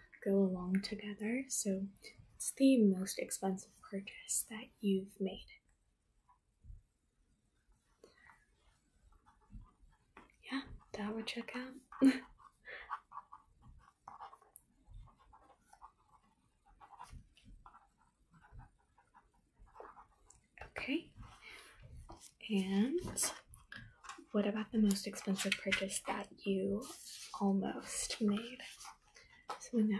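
A young woman talks calmly and close up, with pauses.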